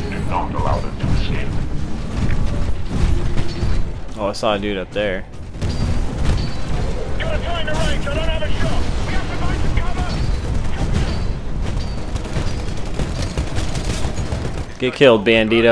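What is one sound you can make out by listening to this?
Heavy gunfire booms in rapid bursts.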